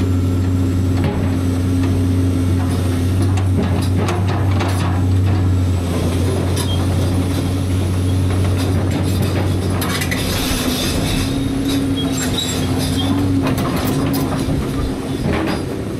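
A tractor engine idles steadily close by.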